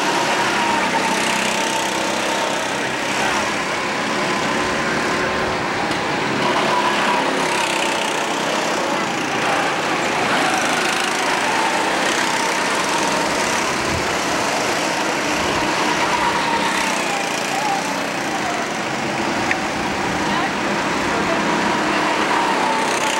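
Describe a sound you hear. Small go-kart engines buzz and whine steadily around a track.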